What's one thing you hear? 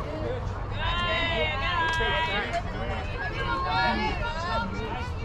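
Young women chant and cheer together outdoors, some way off.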